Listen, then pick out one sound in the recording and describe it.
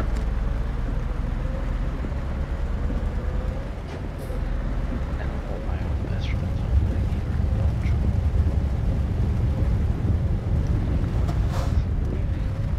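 Windscreen wipers sweep back and forth across the glass.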